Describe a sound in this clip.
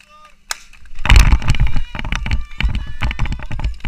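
A crowd of children cheers and shouts loudly.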